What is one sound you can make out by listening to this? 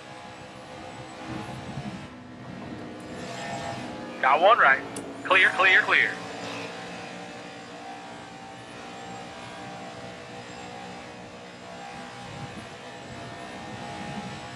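A V8 stock car engine roars at high revs.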